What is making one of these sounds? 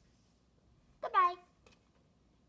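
A young boy squeals happily.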